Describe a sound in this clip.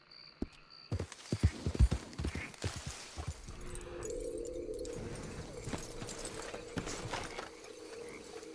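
Leaves and grass rustle as a horse pushes through brush.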